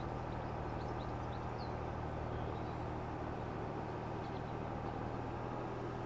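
A tractor engine hums steadily as it drives.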